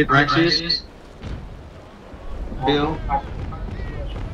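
Cannons boom across open water.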